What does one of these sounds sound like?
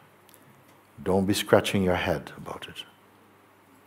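An older man speaks calmly and close to a microphone.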